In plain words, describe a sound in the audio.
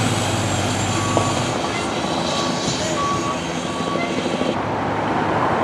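A fire truck engine rumbles as it passes.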